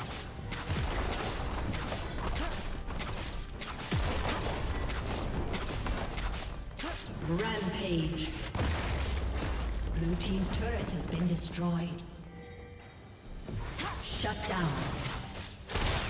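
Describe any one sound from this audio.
Magic blasts and spell effects crackle and burst in a fast fight.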